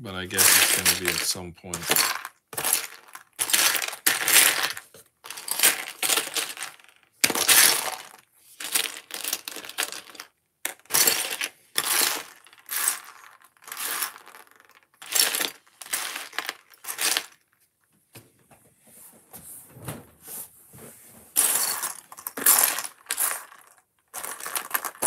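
Small plastic pieces rattle and clatter as a hand rummages through them.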